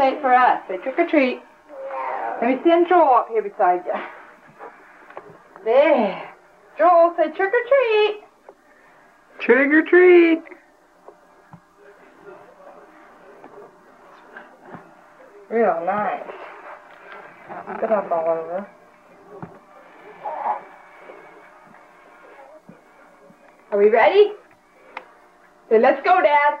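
An adult woman speaks close by with animation.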